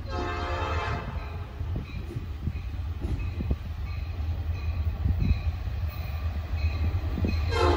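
A diesel locomotive rumbles as it approaches.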